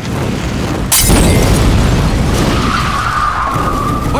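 An explosion booms and roars loudly outdoors.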